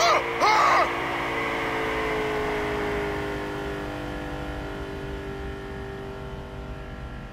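A car engine drones steadily and slowly drops in pitch.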